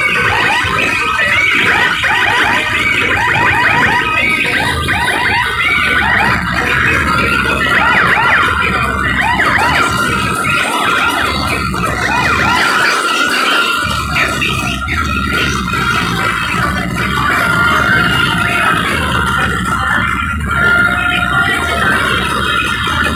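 Loud dance music with heavy bass booms from large speakers.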